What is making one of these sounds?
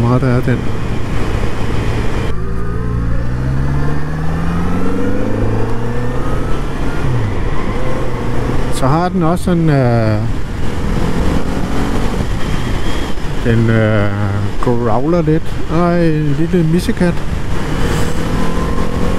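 A motorcycle engine revs up and down as the bike accelerates and shifts gears.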